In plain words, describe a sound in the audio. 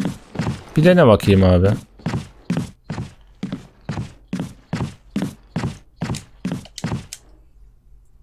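Footsteps thud evenly on a hard floor.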